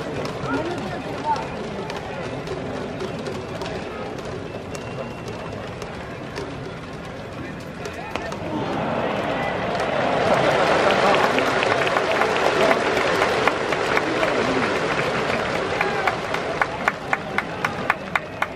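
A large stadium crowd murmurs and then cheers loudly.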